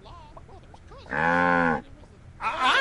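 A cartoon cow moos loudly.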